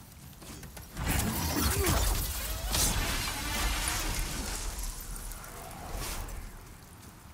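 A large winged creature shrieks loudly overhead.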